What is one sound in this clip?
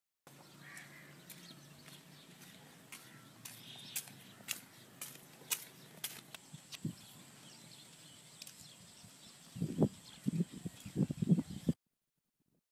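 Footsteps tap on a concrete path.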